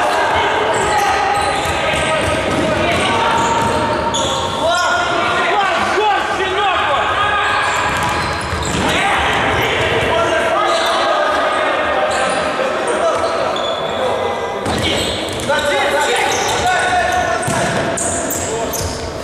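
Men shout to each other across an echoing hall.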